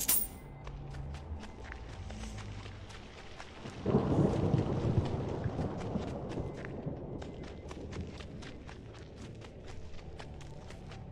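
Footsteps tap steadily across a wooden floor.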